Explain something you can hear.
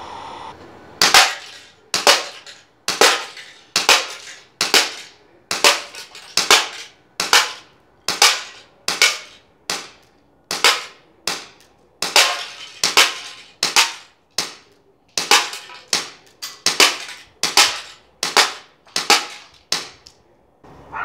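Pellets strike a metal can with a tinny clank.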